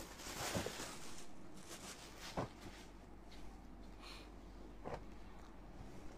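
Fabric rustles as it is unfolded and handled.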